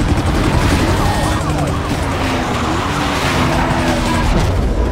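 A police siren wails close by.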